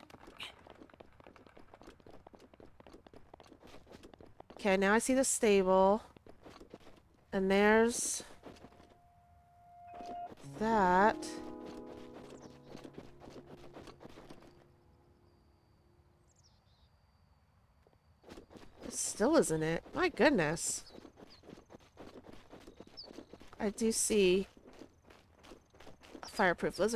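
Footsteps run quickly over grass and dry ground.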